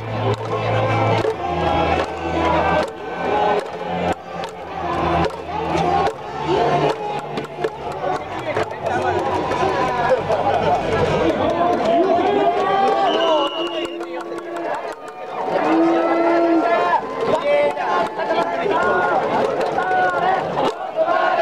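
A large crowd chants and sings together in an open stadium.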